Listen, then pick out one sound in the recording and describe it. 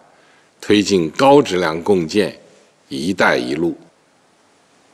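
An older man speaks calmly and formally into a microphone.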